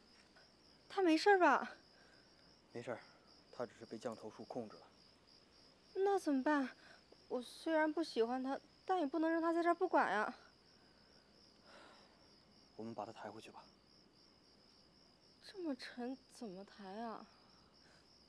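A young woman speaks quietly and anxiously, close by.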